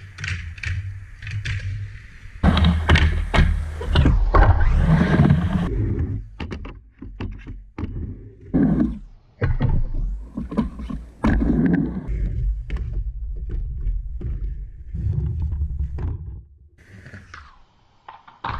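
A skateboard clacks and grinds against a ramp's metal edge.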